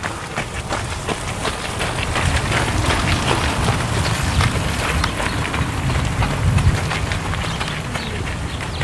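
Leaves rustle in a breeze outdoors.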